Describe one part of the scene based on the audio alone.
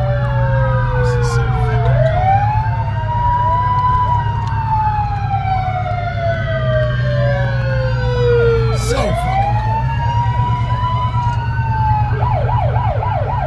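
Several sirens wail close by, rising and falling and overlapping.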